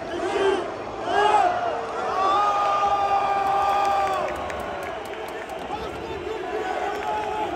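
A stadium crowd roars steadily in the background.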